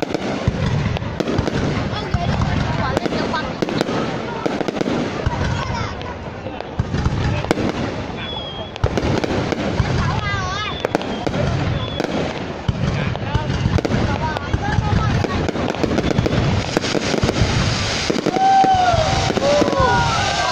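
Rockets whistle as they shoot upward.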